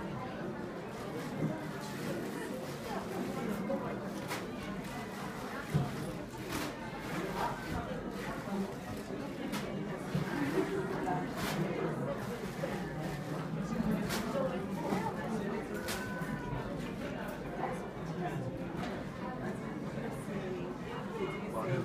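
Two women talk quietly nearby.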